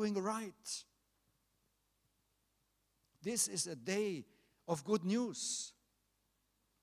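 A middle-aged man speaks slowly and calmly into a microphone, with pauses.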